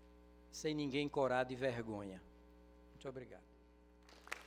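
An elderly man speaks into a microphone in a calm, measured voice.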